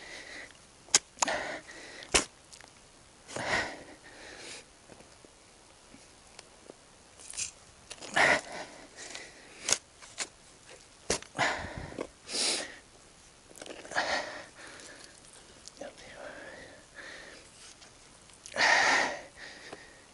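A hoe chops and scrapes into soil outdoors.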